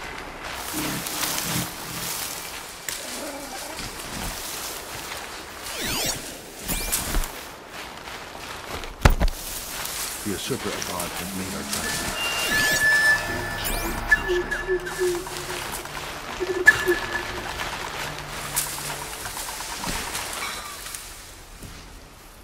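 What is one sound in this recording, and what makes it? Grass rustles as someone creeps through it.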